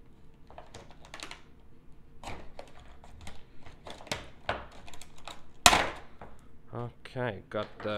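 A knife cuts through stiff plastic packaging.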